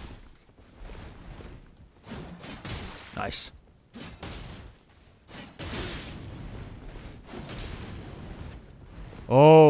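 A heavy blade swings and strikes in rapid blows.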